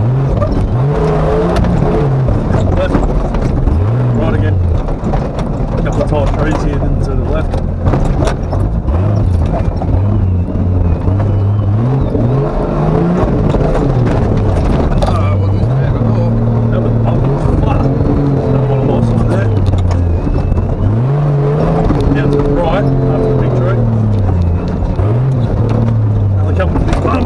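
An off-road vehicle's engine revs hard, rising and falling.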